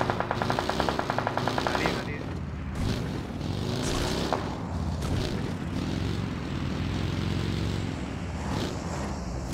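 A buggy engine revs and roars as it drives over rough ground.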